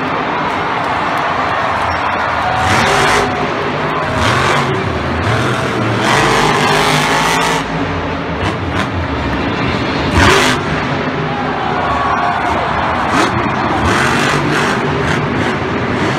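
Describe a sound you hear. A monster truck engine roars and revs loudly.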